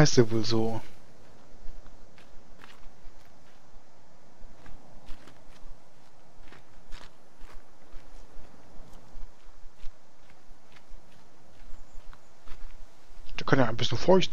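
Footsteps crunch softly over a forest floor.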